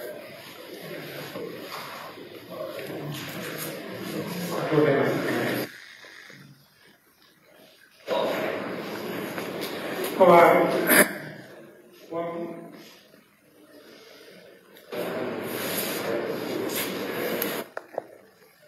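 A crowd of men and women chatters in a room.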